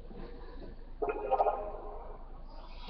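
A short video game jingle plays from a television speaker.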